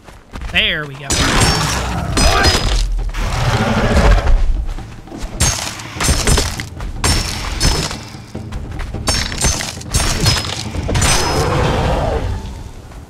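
Blades slash and strike a large beast again and again.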